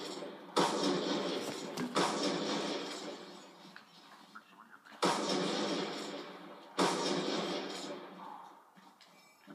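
Loud rifle shots from a video game boom through a television speaker, each echoing away slowly.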